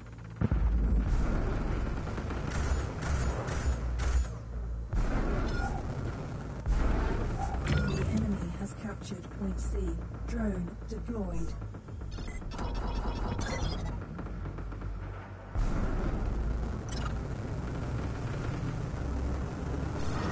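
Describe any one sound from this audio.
Spacecraft cannons fire in rapid bursts.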